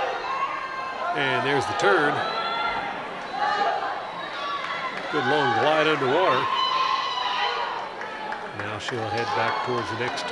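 Swimmers splash through water in an echoing hall.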